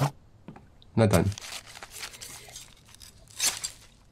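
A carcass is hacked and cut with a wet, squelching sound.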